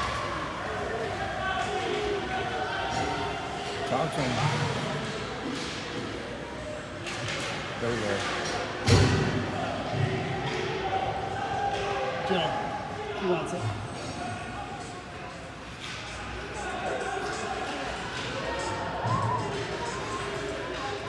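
Ice hockey skates scrape and carve across ice in an echoing indoor rink.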